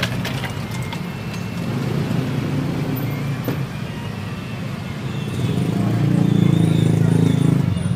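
Thick liquid pours from a metal mug into a plastic cup.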